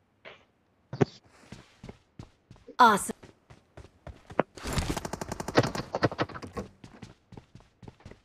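Footsteps thud quickly on floors and ground.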